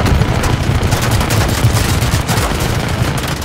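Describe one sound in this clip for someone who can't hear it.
A large explosion booms close by.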